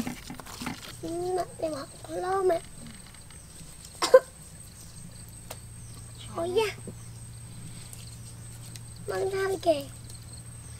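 A young girl talks nearby in a high voice.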